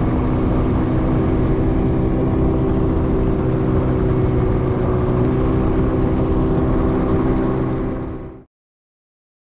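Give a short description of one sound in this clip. A boat motor drones loudly and steadily, then cuts off.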